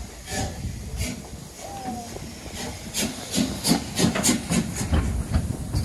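Steam hisses from a locomotive.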